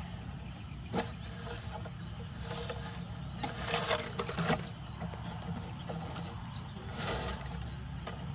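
A plastic pipe scrapes and knocks on the ground.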